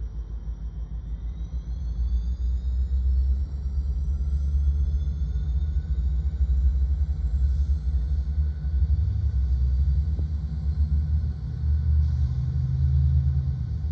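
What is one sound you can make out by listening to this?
A locomotive horn blows loudly.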